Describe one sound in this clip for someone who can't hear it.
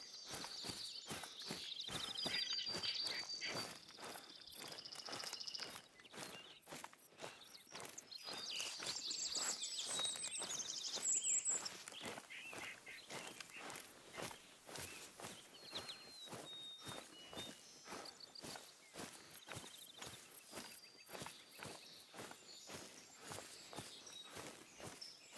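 Footsteps rustle steadily through undergrowth and dry leaves.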